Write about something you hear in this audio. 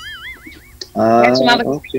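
A young man speaks over an online call.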